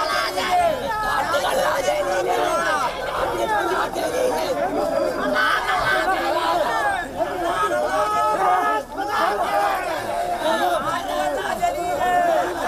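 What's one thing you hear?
A crowd of men shout and argue loudly close by.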